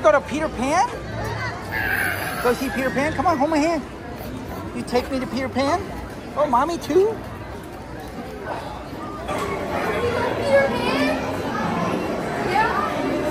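A crowd murmurs outdoors in the background.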